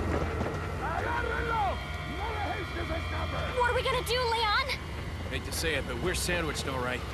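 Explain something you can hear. A crowd of men murmurs and calls out.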